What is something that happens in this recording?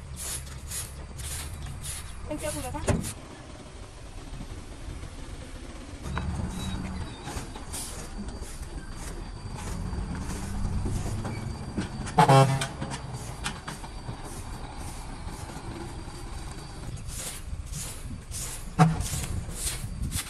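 A broom sweeps rhythmically across a hard dusty floor.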